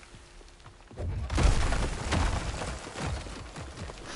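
Rocks crash down and rumble in a burst of falling debris.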